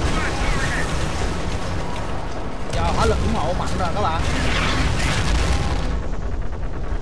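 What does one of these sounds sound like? Gunfire rattles.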